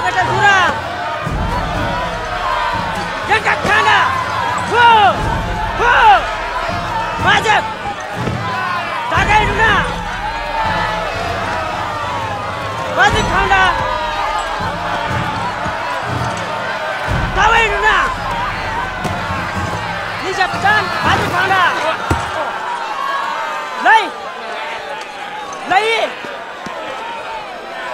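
A crowd of women wail and cry out loudly.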